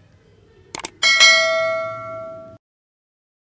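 A small bell chimes and slowly rings out.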